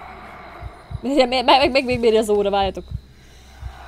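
A young woman cries out loudly close to a microphone.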